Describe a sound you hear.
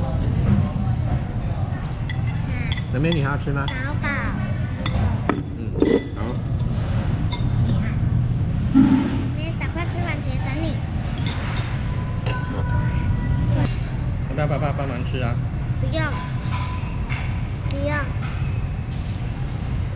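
Young girls talk and chatter close by.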